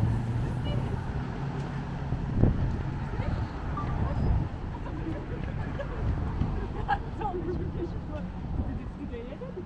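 Footsteps tap on pavement.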